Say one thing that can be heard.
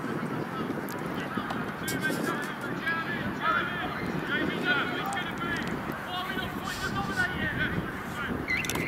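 Men shout and call out across an open field outdoors.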